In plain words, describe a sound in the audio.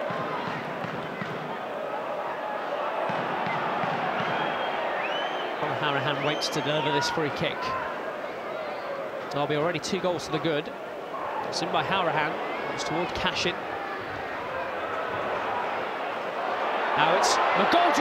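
A large crowd murmurs and chants in a stadium.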